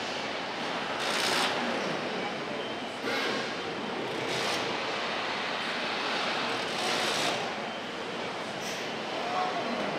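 Air tools hiss and whirr in short bursts.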